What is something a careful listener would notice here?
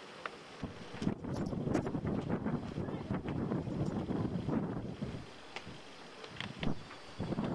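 Strong wind gusts and buffets loudly outdoors.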